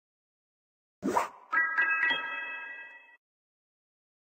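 A short bright game jingle rings out and fades.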